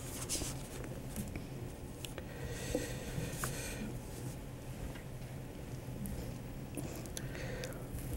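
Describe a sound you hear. A middle-aged man speaks steadily into a microphone, reading out.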